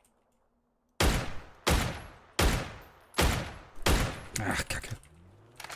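Sniper rifle shots crack loudly one after another, each ringing out.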